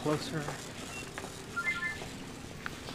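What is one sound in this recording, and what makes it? A handheld game beeps with short electronic tones.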